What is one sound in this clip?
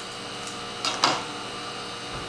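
Plastic tubes clink in a rack.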